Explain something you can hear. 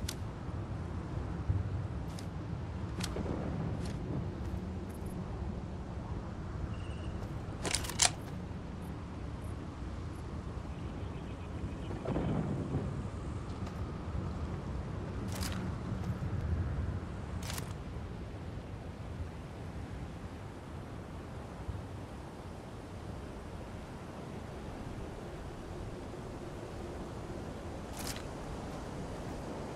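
Leaves rustle as someone pushes through bushes.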